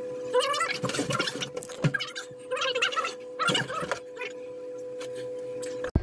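Tape is peeled off a wall.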